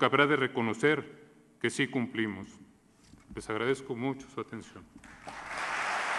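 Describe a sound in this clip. A man speaks calmly into a microphone in a large hall.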